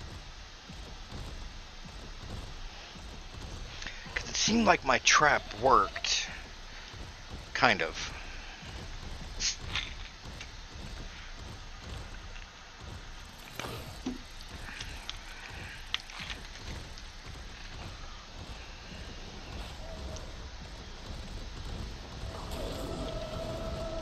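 Footsteps patter steadily over rocky ground.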